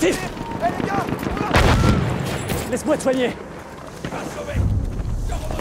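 A rifle fires sharp single shots.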